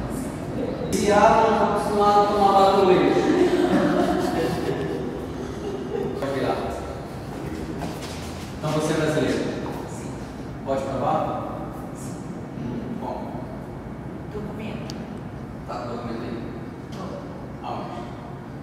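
A man calls out loudly in an echoing hall.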